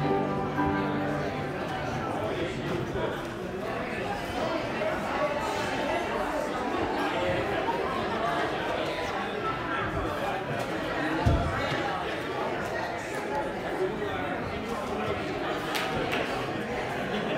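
A crowd of people chatter in an echoing hall.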